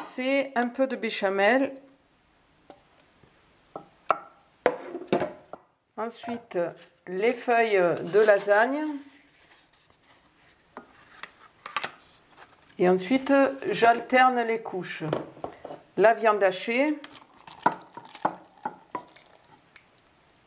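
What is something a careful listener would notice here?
A spoon scrapes food out of a pot into a glass dish.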